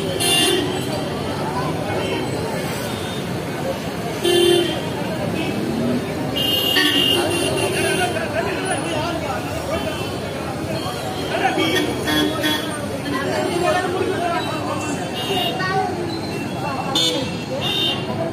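Vehicle horns beep now and then.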